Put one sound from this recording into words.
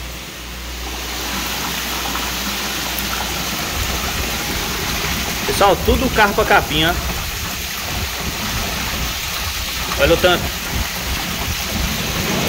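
Water pours and splashes steadily into a tank.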